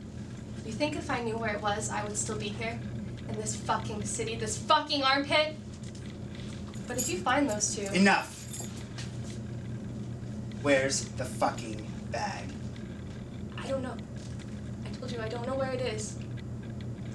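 A young man speaks firmly close by.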